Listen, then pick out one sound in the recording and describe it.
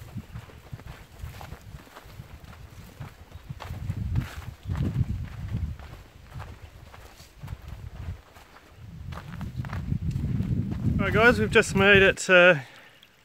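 Footsteps crunch on a dry bush trail.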